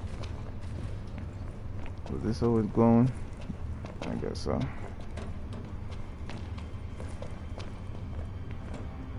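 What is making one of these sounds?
Footsteps run quickly across a metal floor.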